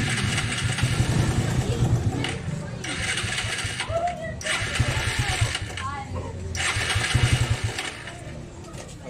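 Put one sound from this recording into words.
A motorcycle engine idles and revs loudly up close.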